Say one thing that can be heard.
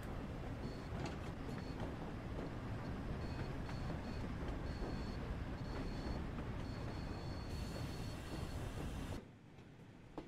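A train rumbles loudly and steadily close by.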